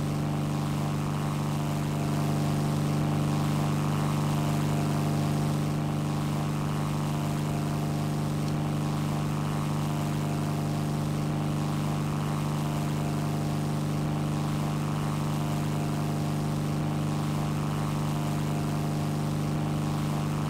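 Propeller engines drone steadily at a low, even pitch.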